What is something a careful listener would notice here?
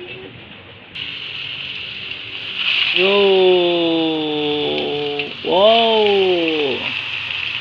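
Tofu sizzles loudly in hot oil.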